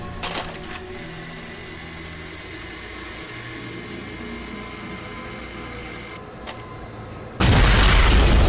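A small remote-control car whirs and buzzes as it drives.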